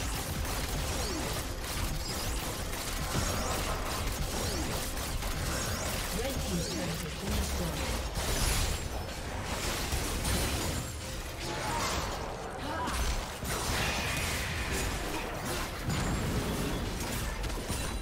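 Magic spells crackle and whoosh in a busy fight.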